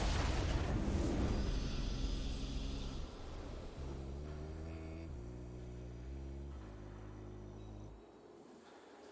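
A triumphant musical fanfare plays and fades out.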